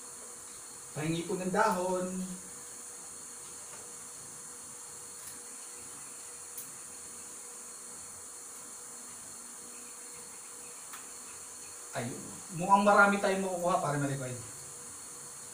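A man talks nearby in short bursts.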